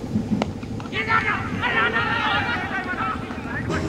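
Men shout loudly outdoors in an appeal.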